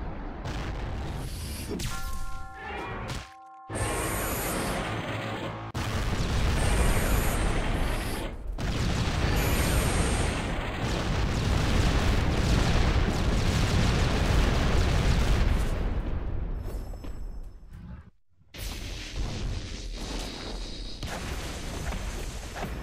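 Energy beams blast with a loud hiss.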